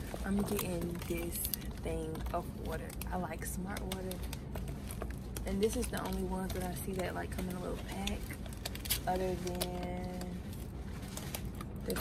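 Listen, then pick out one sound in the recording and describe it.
Plastic water bottles crinkle and thump as a pack is handled.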